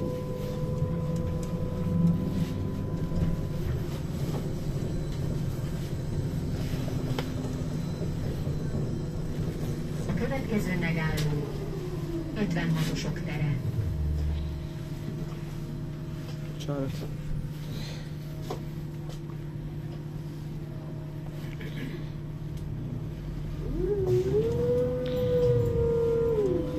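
A tram rumbles steadily along the tracks.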